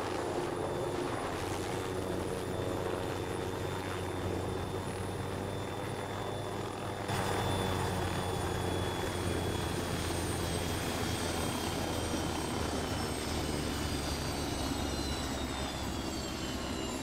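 A helicopter's rotor whirs steadily nearby, then slowly fades.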